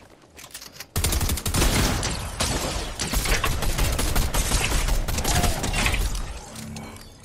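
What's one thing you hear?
Gunfire rattles rapidly in a video game.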